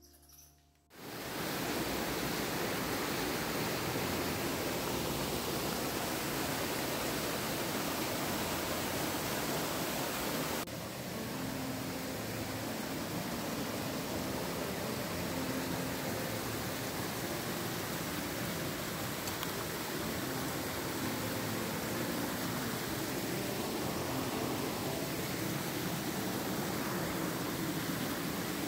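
A rushing stream splashes and roars over rocks close by.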